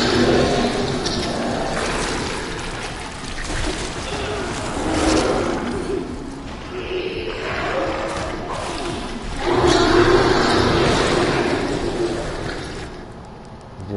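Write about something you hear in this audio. A creature growls and snarls up close.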